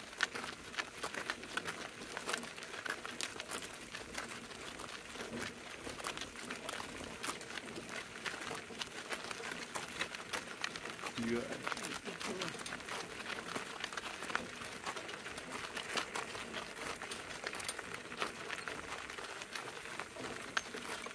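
Cart wheels crunch and rattle over gravel.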